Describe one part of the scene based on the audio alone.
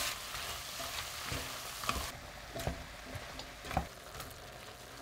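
A wooden spatula scrapes and knocks in a pot.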